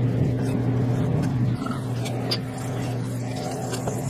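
A knife slices raw chicken on a cutting board.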